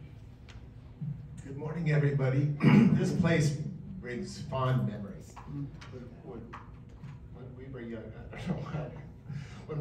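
A man speaks calmly into a microphone, heard over loudspeakers in a room.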